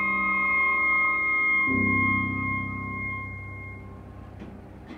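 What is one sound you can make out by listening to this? A flute plays a melody and holds a long final note.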